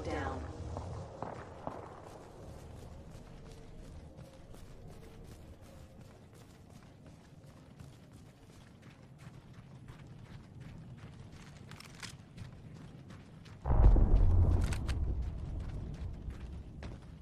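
Quick footsteps thud and crunch over dirt and grass at a steady run.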